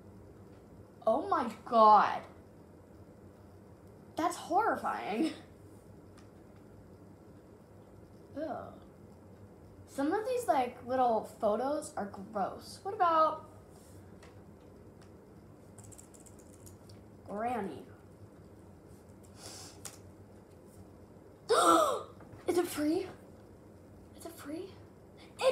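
A girl talks close by in short bursts, with animation.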